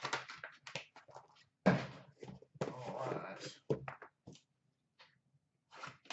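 A cardboard box scrapes and thumps as it is moved.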